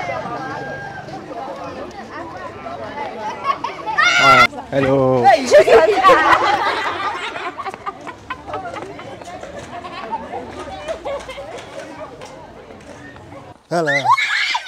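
Young women chat and call out nearby outdoors.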